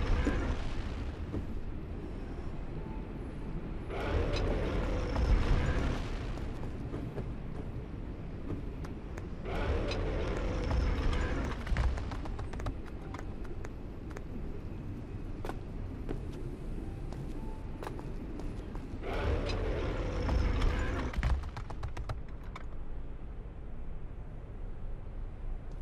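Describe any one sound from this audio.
Quick footsteps patter on stone and wood.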